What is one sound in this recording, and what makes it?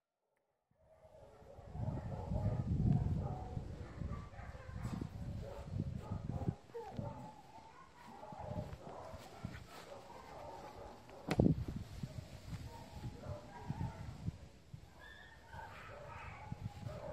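A dog's paws rustle through grass.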